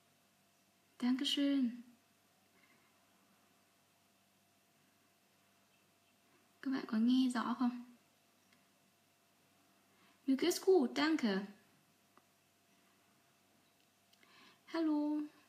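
A young woman speaks calmly and close to the microphone, in short bursts with pauses.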